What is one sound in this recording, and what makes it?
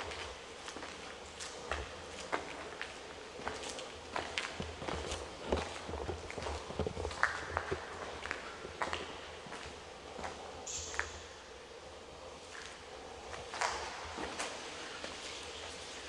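Footsteps crunch on concrete in an echoing tunnel.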